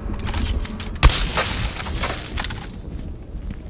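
An electric charge crackles and zaps with a sharp burst.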